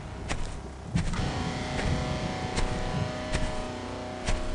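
Heavy footsteps thud on the ground, coming closer.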